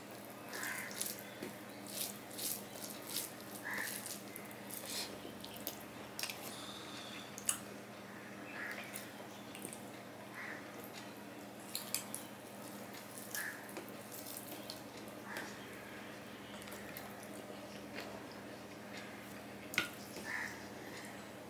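Fingers squish and mix rice on a metal plate.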